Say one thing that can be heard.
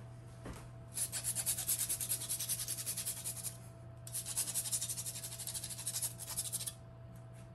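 A grater rasps quickly against something hard.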